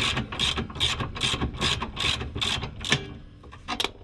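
A ratchet wrench clicks in quick, steady strokes.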